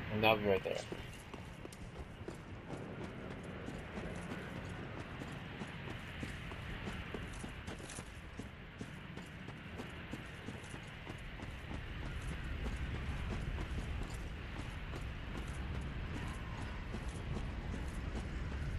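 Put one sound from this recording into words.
Armoured footsteps run quickly over the ground.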